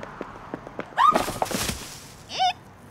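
Dry leaves rustle and crunch as a woman falls to the ground.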